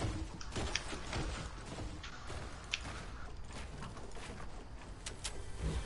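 Wooden walls snap into place with quick clattering knocks.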